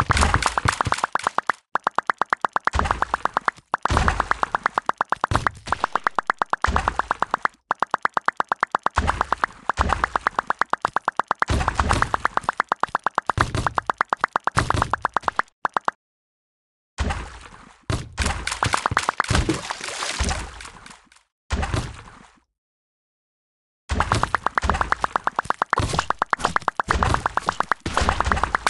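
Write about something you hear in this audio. A paint gun fires in fast, rapid bursts.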